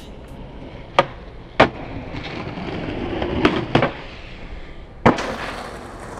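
A skateboard's wheels and deck clack sharply on landing and grinding a ledge.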